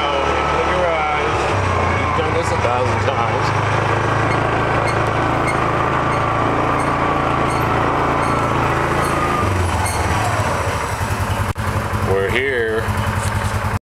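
A small vehicle's engine hums steadily as it drives slowly, then idles with a chugging beat.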